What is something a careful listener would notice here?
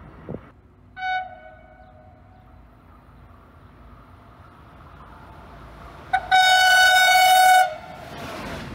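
A diesel locomotive sounds a loud, two-tone horn.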